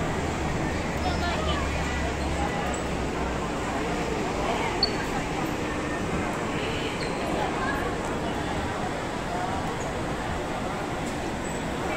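A crowd of people murmurs and chatters nearby in a large echoing indoor space.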